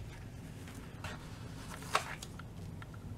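A sticker peels off its backing sheet with a soft crackle.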